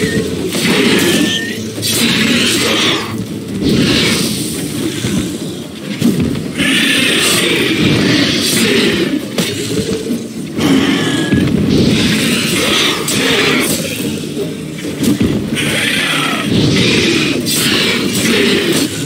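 A sword clashes and strikes in quick blows.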